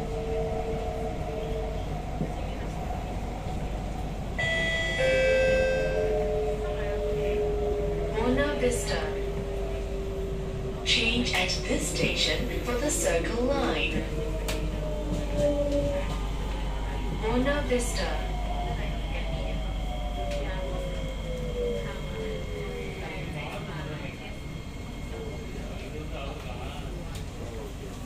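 A train hums and rumbles steadily along the tracks.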